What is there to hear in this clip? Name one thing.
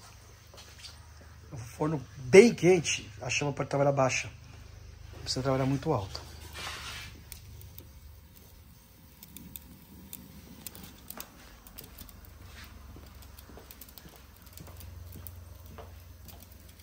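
Gas flames hiss softly inside an oven.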